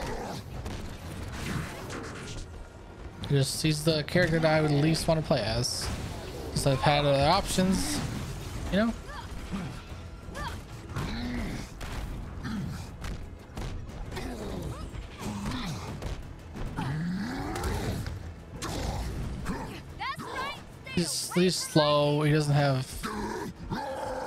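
Heavy punches and crashes thump and smash in a fight.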